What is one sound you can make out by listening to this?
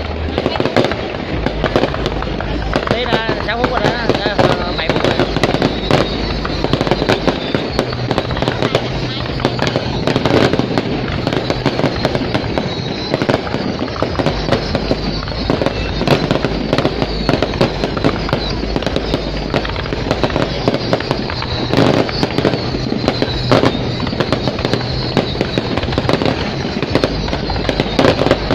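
Fireworks crackle and pop rapidly overhead, outdoors.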